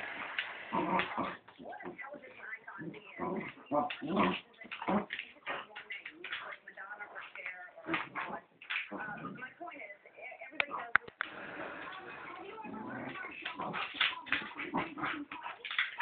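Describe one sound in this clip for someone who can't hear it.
A dog's claws click and patter on a hard floor.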